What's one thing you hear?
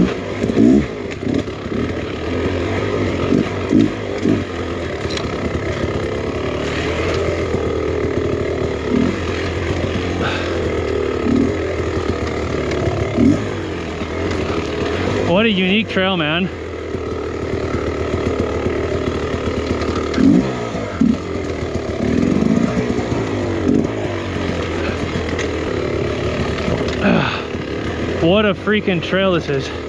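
A dirt bike engine hums and revs steadily close by.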